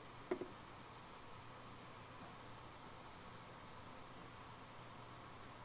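Oil trickles into a plastic bowl in a thin stream.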